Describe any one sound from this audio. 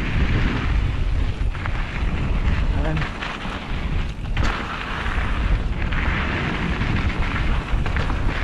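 Wind rushes loudly past a microphone.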